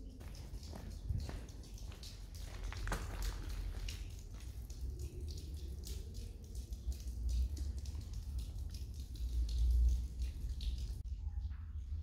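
Water trickles and runs down a wall.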